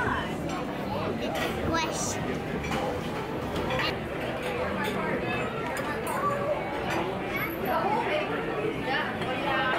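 Many people chatter in a busy, echoing room.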